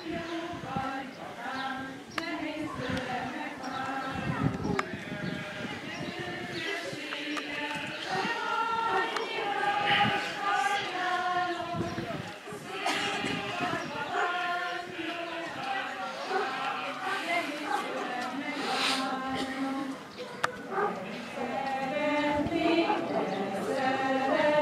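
A group of girls and women sing together outdoors.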